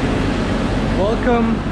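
A young man speaks up close, with animation.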